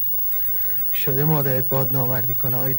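A man speaks slowly in a low, weary voice close by.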